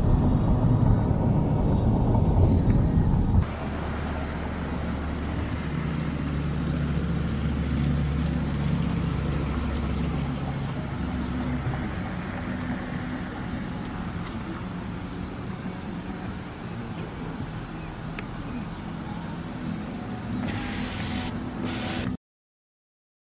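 A car engine hums steadily as the car drives.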